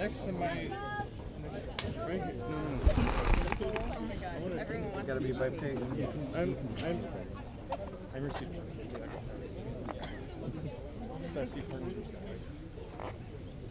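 A large crowd of young men and women chatters and calls out all around, outdoors.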